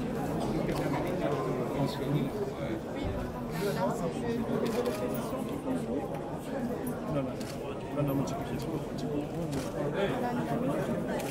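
Several men murmur and talk over one another nearby.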